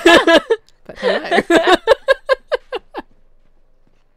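A young woman laughs loudly into a close microphone.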